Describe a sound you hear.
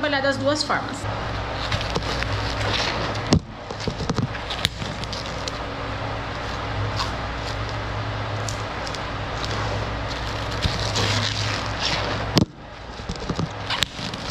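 Plastic cling film crinkles and rustles.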